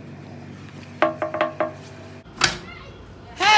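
A metal door latch clicks as a door opens.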